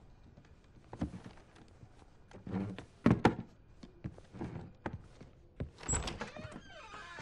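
A wooden chair knocks and scrapes on the floor.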